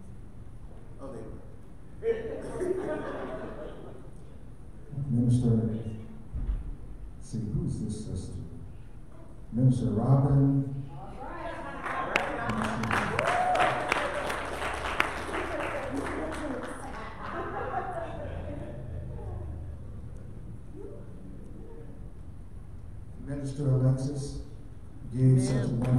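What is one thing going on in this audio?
An elderly man speaks with animation through a microphone and loudspeakers in an echoing hall.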